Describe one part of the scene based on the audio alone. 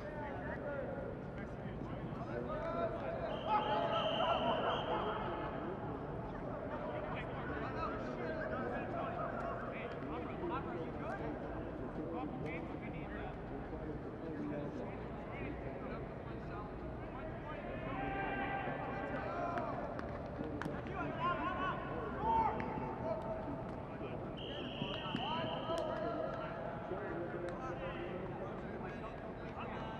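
Adult men shout and call out across an open field.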